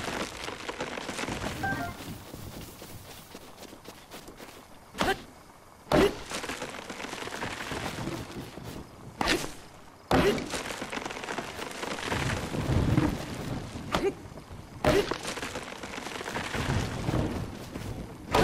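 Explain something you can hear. A tree trunk crashes heavily to the ground.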